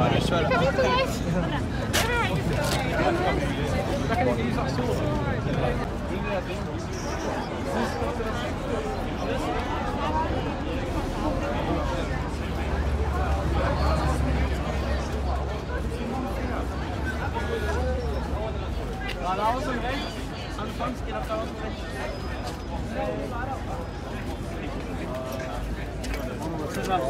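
A crowd of adults and children chatters outdoors.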